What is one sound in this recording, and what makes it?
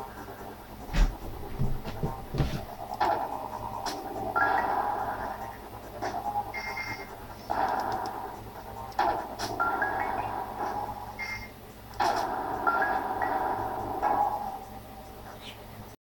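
Electronic blasts and explosions from a game pop in quick bursts.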